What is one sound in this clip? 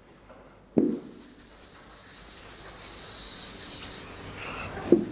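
A duster rubs across a chalkboard.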